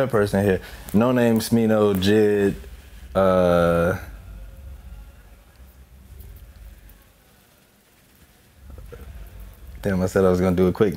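A young man talks with animation close by, with pauses.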